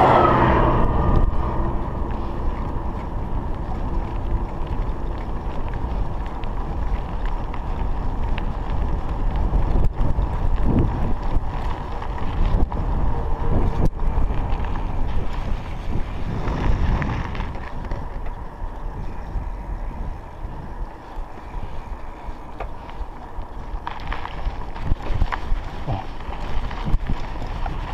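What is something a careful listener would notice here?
A bicycle's tyres hum on a paved road.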